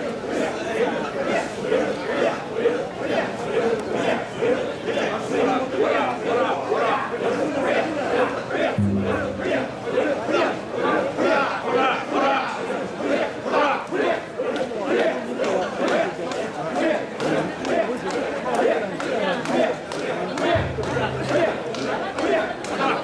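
A large crowd of men chants loudly in a steady rhythm outdoors.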